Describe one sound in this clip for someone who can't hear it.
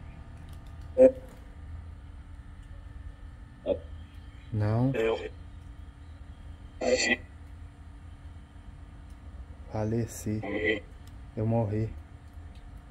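Short bursts of a distorted voice come from a small handheld radio.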